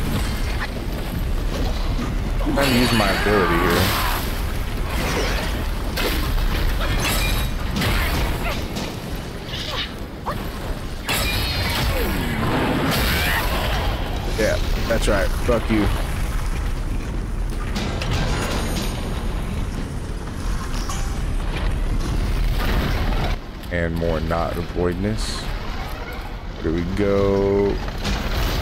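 Flames crackle and hiss.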